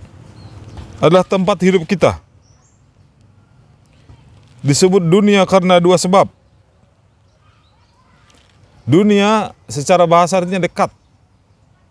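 A man recites in a chanting voice, close to a microphone, in short phrases with pauses.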